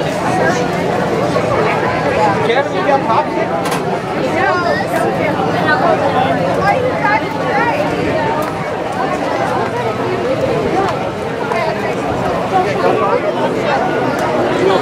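A crowd of men and women chatter all around, outdoors.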